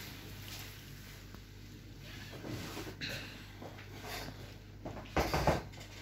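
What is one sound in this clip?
A padded table creaks as a man lies down on it.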